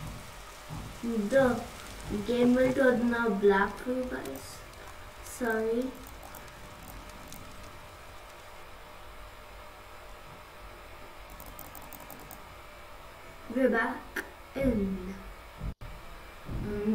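A boy talks with animation into a close headset microphone.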